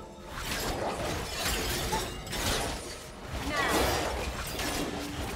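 Game characters clash in battle with bursts of magical spell effects.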